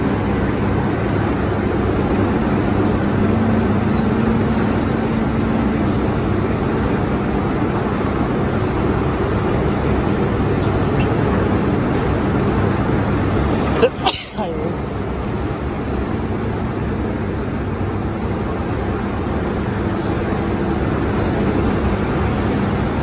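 A tractor engine rumbles steadily close by while straining up a ramp.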